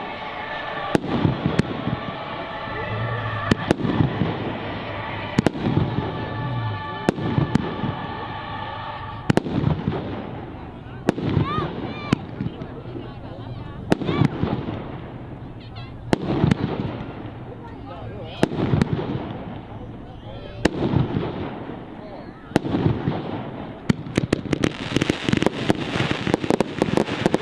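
Fireworks burst with loud bangs outdoors.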